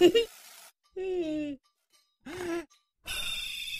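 A man laughs cheerfully.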